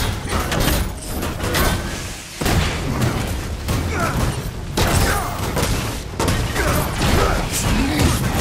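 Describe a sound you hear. Electric blasts crackle and zap in rapid bursts.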